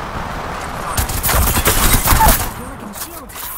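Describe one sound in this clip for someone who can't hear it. Game automatic gunfire rattles in quick bursts.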